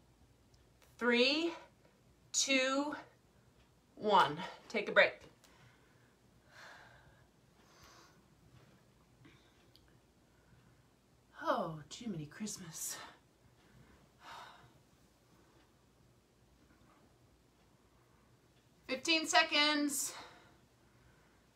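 A woman talks breathlessly close by, in short bursts.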